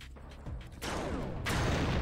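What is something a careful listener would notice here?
A machine gun fires a short burst.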